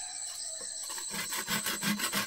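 A machete chops into bamboo.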